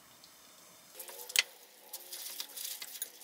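Chopsticks stir noodles in a bowl.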